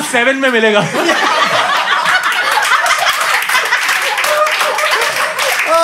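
An audience laughs and chatters.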